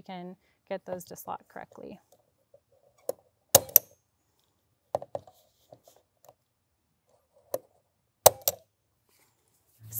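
A metal tool clicks and knocks against a wooden frame.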